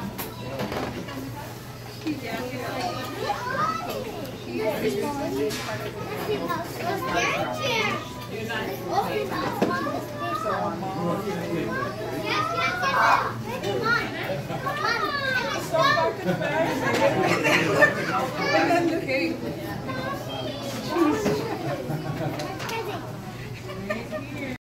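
Children and adults chatter and talk nearby, some voices high and excited.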